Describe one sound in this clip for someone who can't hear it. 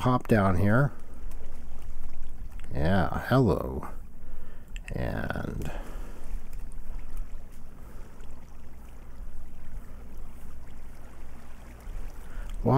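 Water flows and splashes steadily.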